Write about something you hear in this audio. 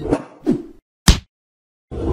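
A hammer strikes with a sharp bang.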